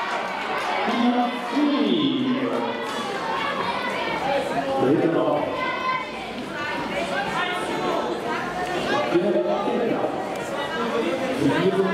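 A crowd of spectators cheers and shouts encouragement outdoors.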